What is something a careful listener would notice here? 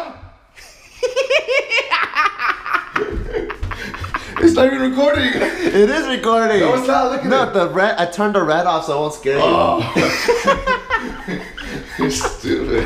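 A man laughs loudly and talks with animation close by.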